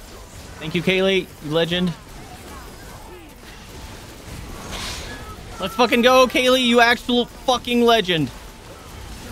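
A young man talks loudly and excitedly into a close microphone.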